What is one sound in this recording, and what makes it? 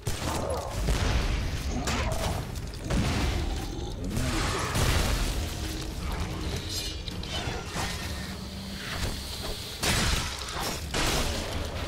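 Explosions boom and crackle loudly.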